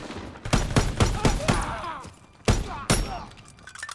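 A rifle fires several sharp shots.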